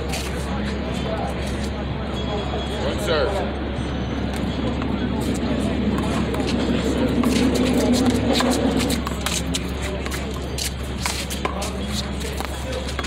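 A ball smacks against a wall and the concrete with sharp slaps.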